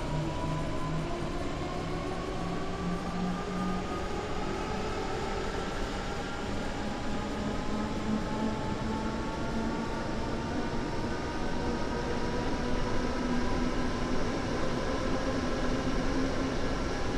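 An electric train motor hums and whines, rising steadily in pitch as the train speeds up.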